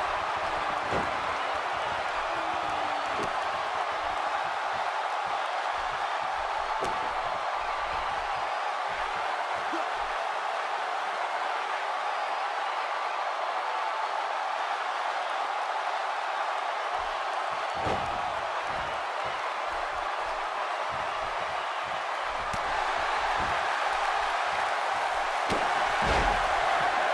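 Bodies slam down onto a wrestling mat with heavy thuds.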